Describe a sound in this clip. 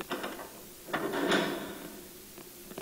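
A heavy door creaks open slowly.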